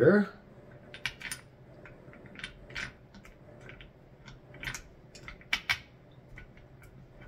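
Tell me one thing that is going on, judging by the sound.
Small metal parts click and tap against each other.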